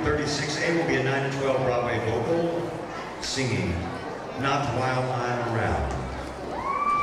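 A man speaks into a microphone.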